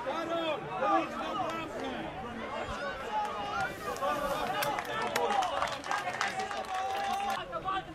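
Men shout and cheer loudly outdoors.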